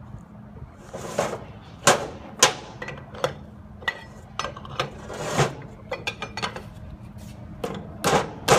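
Metal parts clank and knock against a steel workbench.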